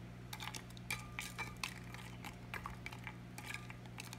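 A wooden stick stirs and scrapes in a glass bowl.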